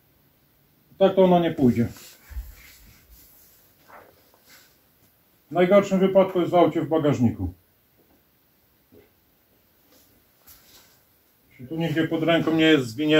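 A man speaks nearby in short bursts.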